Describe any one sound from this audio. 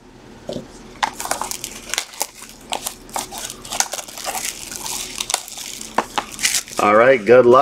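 Plastic wrapping crinkles and tears up close.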